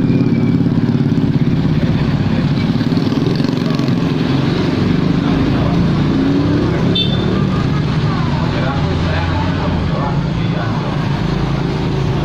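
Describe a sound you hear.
Motorcycle engines buzz past one after another.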